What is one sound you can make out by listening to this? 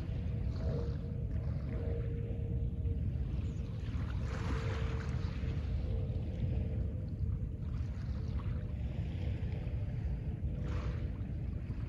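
Small waves wash gently onto a pebble shore.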